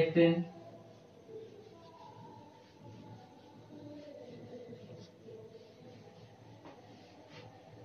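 A cloth rubs against a whiteboard.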